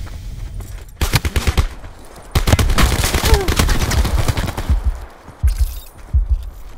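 Gunshots crack nearby in quick bursts.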